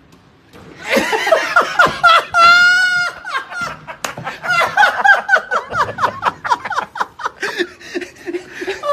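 A man laughs loudly and hysterically close by.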